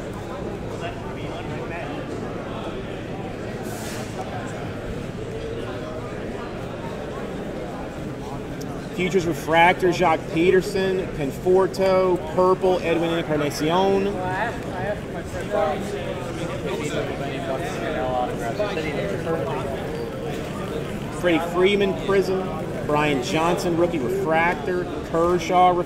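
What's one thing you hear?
A crowd murmurs in a large, echoing hall.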